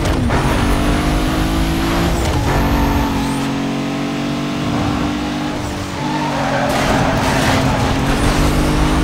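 A racing car engine roars at high speed, shifting gears.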